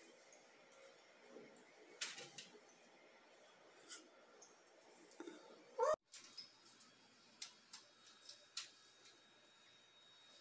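A cat paws at a clothes drying rack, rattling clothes pegs with light clicks.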